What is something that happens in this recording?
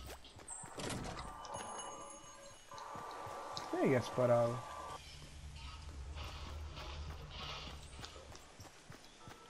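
Footsteps run quickly across grass and pavement.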